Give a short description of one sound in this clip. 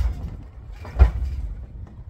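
A bin lid bangs shut.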